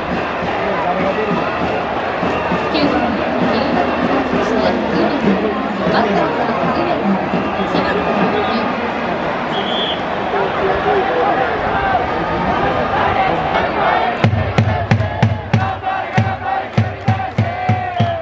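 A large stadium crowd murmurs and chatters steadily.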